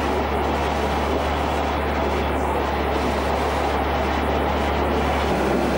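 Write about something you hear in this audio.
Water gushes loudly from a pipe in a steady rushing stream.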